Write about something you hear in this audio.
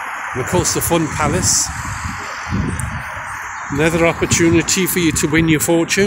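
A car drives slowly past on the road.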